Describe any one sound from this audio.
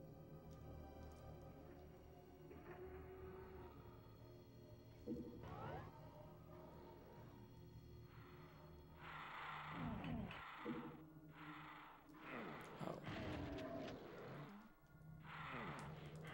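A man talks into a microphone with animation, close by.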